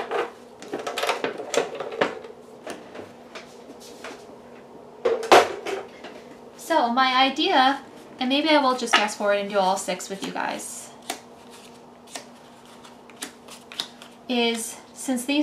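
Paper cards rustle and tap softly as they are laid down.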